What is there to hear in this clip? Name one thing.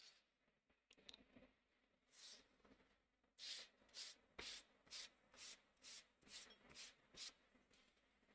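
A hand brushes rapidly across paper in quick repeated strokes.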